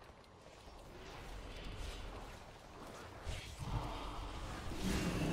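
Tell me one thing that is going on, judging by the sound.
Magic spells whoosh and crackle in a game.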